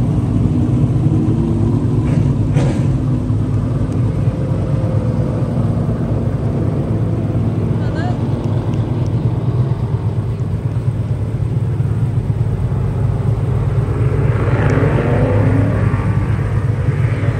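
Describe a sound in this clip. Race car engines rumble and roar steadily outdoors.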